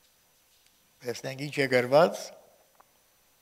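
An elderly man speaks solemnly into a microphone.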